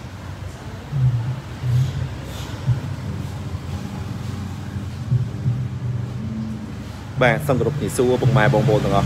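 A car engine revs sharply in short bursts.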